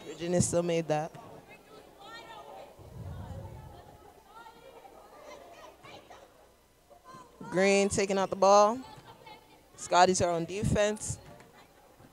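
Young women shout loudly in an echoing gym.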